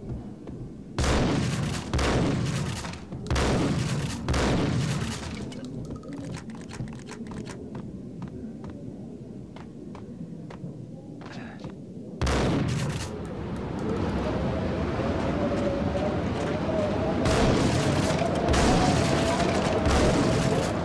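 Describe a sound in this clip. Shotgun blasts boom loudly, one after another, with echoes.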